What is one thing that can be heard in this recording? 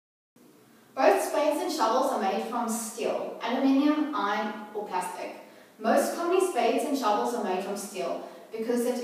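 A young person speaks calmly and clearly, close by.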